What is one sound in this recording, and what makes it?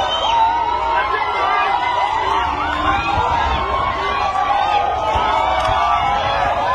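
A crowd of men and women shout and chant loudly outdoors.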